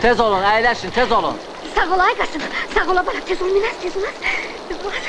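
A woman wails loudly nearby.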